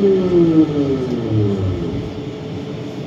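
The electric motors of a rubber-tyred automated metro whine down in pitch as the train slows to a stop.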